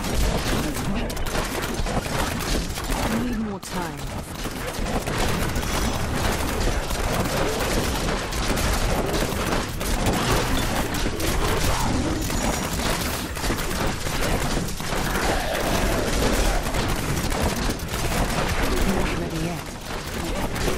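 Magical energy bolts fire and blast in rapid bursts during a video game battle.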